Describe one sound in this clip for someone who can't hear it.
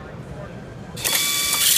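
An air-powered screwdriver whirs loudly with a hiss of air.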